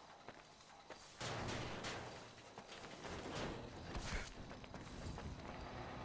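A man's footsteps crunch on gravel.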